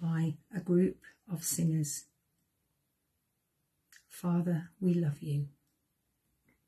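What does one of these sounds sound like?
A middle-aged woman speaks calmly and close to a microphone, in short phrases.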